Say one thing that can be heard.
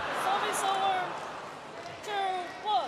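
A crowd cheers and claps briefly in a large echoing hall, then quiets.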